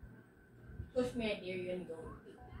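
A short musical chime plays from a television speaker.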